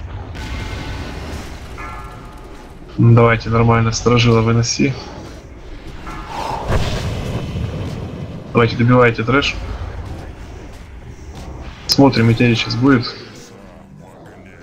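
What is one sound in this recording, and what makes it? Magic blasts crackle and whoosh in a game battle.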